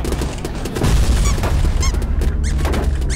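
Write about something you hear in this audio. A second explosion bursts loudly.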